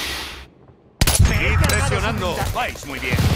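A bolt-action rifle fires a single sharp shot.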